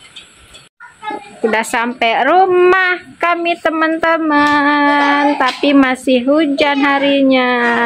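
A young child calls out nearby in a high, drawn-out voice.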